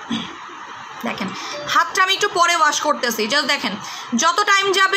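A young woman speaks close to a microphone, with animation.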